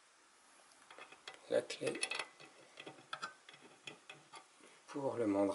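Small metal parts click and rattle as they are handled.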